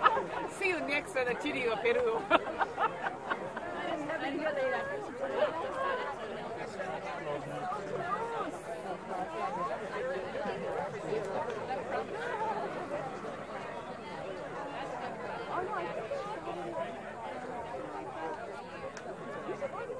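A crowd of men, women and children chatters at a distance, outdoors.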